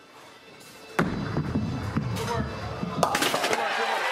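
A bowling ball rolls down a wooden lane with a low rumble.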